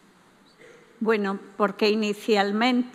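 A woman speaks into a microphone over loudspeakers in a large room.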